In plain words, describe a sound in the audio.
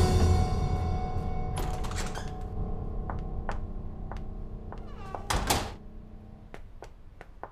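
Music plays and fades out.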